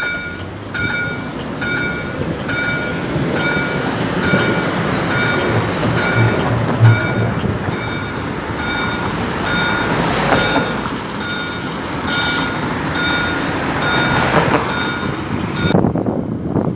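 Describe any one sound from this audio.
A tram's warning signal beeps over and over at a steady pace.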